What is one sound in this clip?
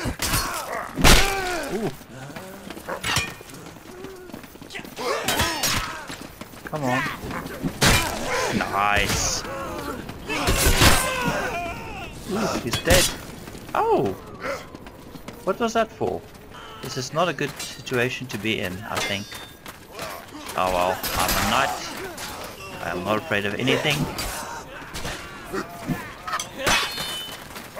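Metal weapons clash and strike in sharp blows.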